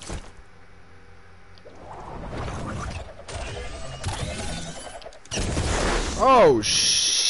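An umbrella opens with a soft whoosh.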